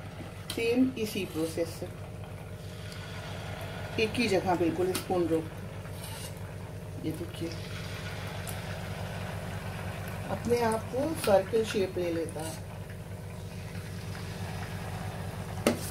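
Hot oil sizzles and bubbles as batter fries.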